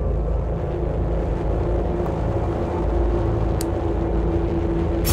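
Low, droning game music plays steadily.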